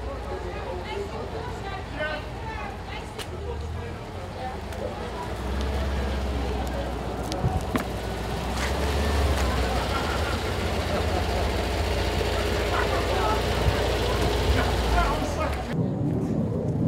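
An old van engine rumbles and chugs as it drives slowly past.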